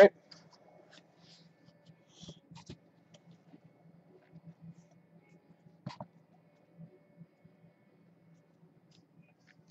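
A small cardboard box is slid open by hand.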